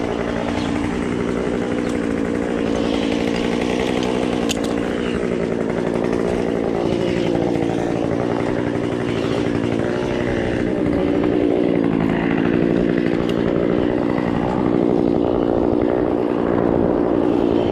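Climbing spikes crunch into tree bark.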